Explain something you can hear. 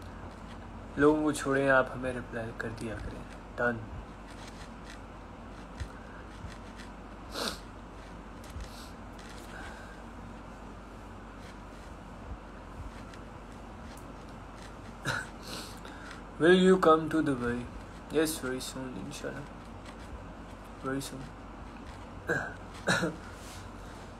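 A young man speaks casually and close to a phone microphone, with pauses.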